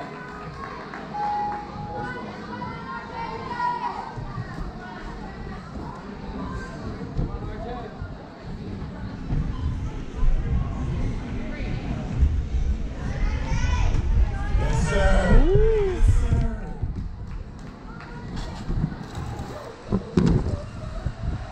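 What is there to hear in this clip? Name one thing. A crowd of children chatters and shouts in a large echoing hall.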